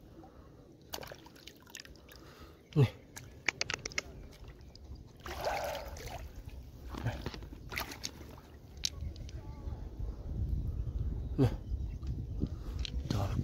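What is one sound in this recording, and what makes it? A hand splashes in shallow water.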